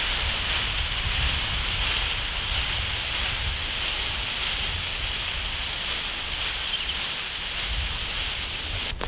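Footsteps crunch through dry plant stalks.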